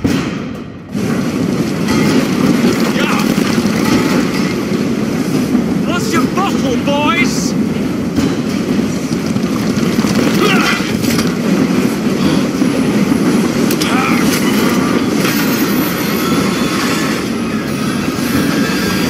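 A steam locomotive rumbles and chugs steadily.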